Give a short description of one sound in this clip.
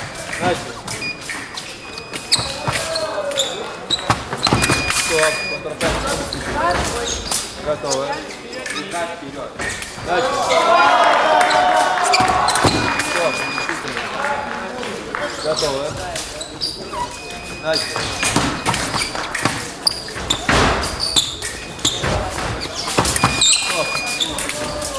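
A scoring machine beeps in short high tones.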